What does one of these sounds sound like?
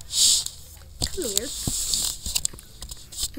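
A video game plays electronic sounds through a small tablet speaker.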